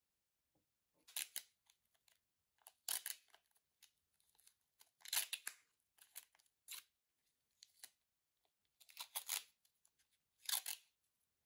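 Masking tape rips and crackles as it is pulled from a roll.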